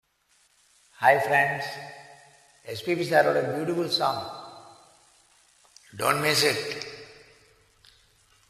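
A middle-aged man sings in phrases close to a headset microphone, with reverb.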